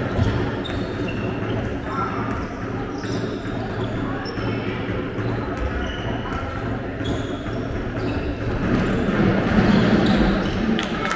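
A ball bounces on the court.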